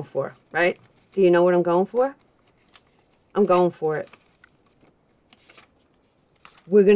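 Paper cards rustle and slide softly as hands handle them.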